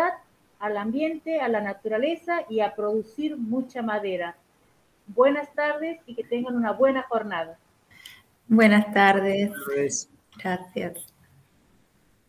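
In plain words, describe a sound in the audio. A middle-aged woman speaks warmly over an online call.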